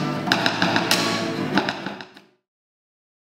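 Drumsticks tap out a beat on a hard case.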